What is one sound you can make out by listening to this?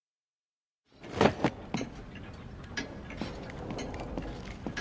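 Heavy footsteps thud on creaking wooden boards.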